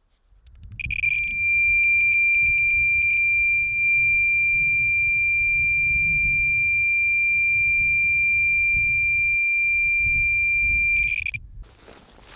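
A handheld meter beeps rapidly, then gives a long steady high tone.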